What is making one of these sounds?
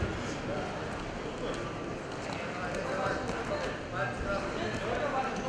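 Wrestlers' shoes scuff on a mat.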